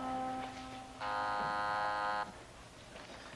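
A doorbell buzzes.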